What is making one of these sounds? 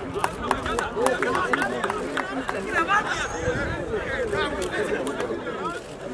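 Several young men shout and laugh playfully outdoors.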